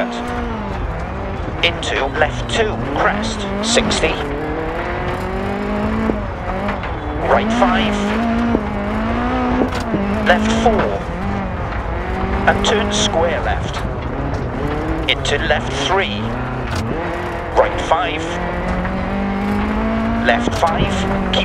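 A rally car engine revs hard, rising and falling as gears change.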